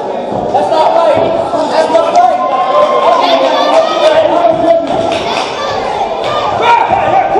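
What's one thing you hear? A crowd cheers and shouts loudly in an echoing hall.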